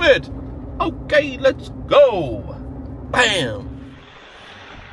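A man talks with animation close by inside a car.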